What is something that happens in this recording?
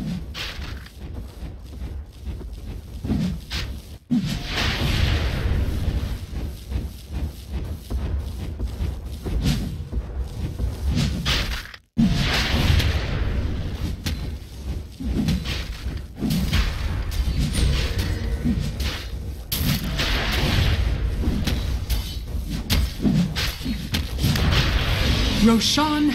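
Magic blasts boom and crackle amid clashing fighting sounds.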